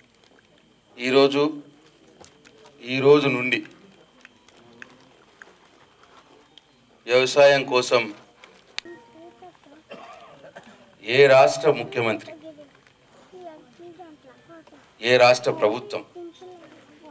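A middle-aged man speaks loudly and with emphasis into a microphone, heard through loudspeakers in bursts.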